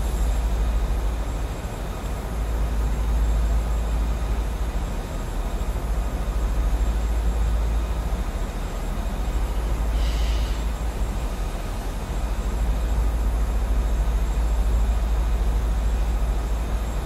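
A jet engine drones steadily with a low rumble.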